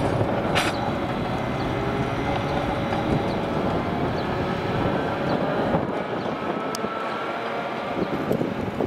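A tram rumbles along the rails, its wheels clicking and squealing softly.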